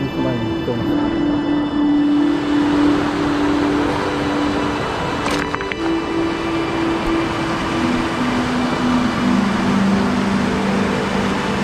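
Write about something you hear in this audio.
A shallow river rushes and gurgles over stones nearby.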